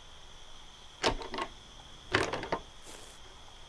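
A locked metal door rattles as it is tugged.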